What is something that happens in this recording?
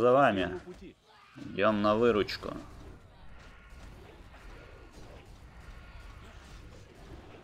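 Weapons strike and spells crackle in a fight.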